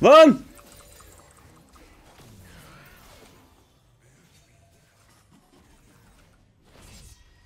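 Video game spell effects chime and whoosh.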